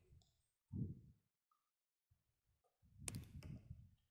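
Scissors snip a thread.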